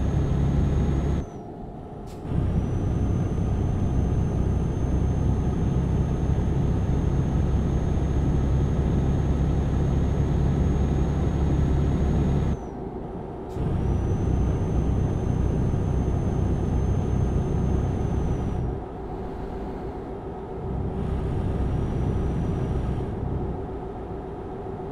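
A truck engine hums steadily as it drives along a road.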